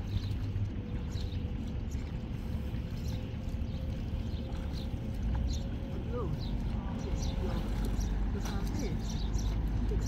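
Water splashes softly.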